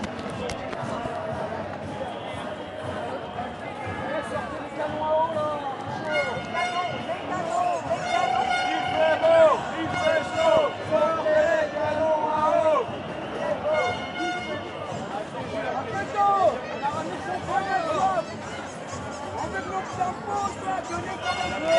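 A large crowd of men and women chatters and shouts outdoors.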